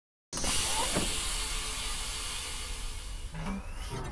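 Air hisses loudly as a chamber pressurizes.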